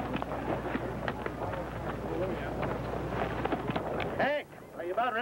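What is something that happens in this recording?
Horse hooves thud and scuffle on dry ground.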